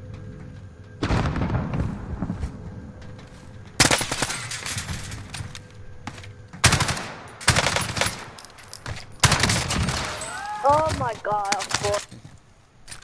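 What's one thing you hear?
Rapid gunfire rattles in loud, close bursts.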